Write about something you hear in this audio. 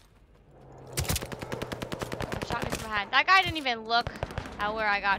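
Rapid gunfire rattles close by.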